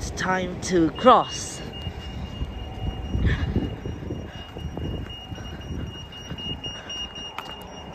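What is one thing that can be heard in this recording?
A pedestrian crossing signal sounds a steady, high tone.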